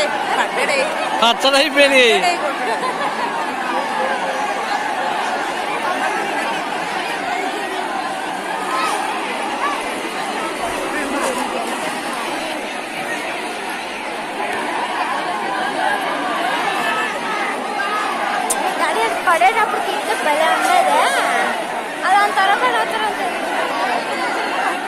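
A large outdoor crowd of men and women chatters and shouts all around.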